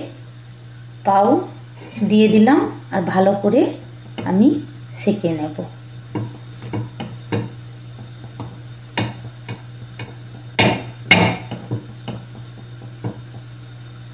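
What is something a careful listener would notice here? Bread buns tap and scrape lightly against a pan.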